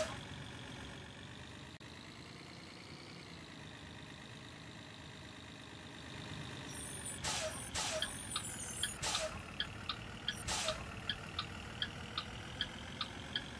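A bus engine hums steadily as it drives.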